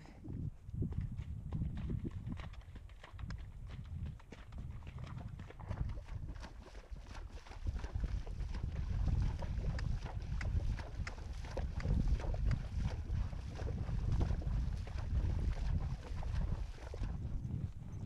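A horse's hooves splash through shallow water.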